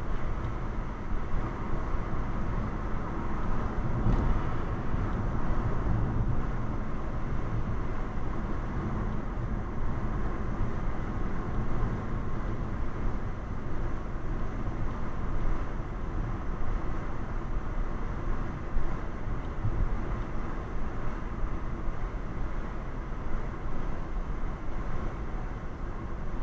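Tyres roll steadily along a road.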